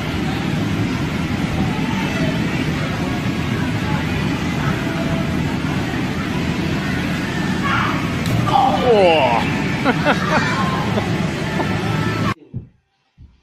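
Children shout and squeal in a large echoing hall.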